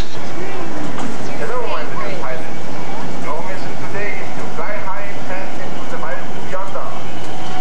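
A miniature train rolls slowly along its rails.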